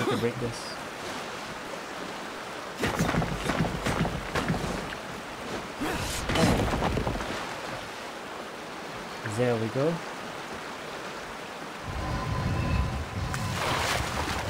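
Water splashes and rushes.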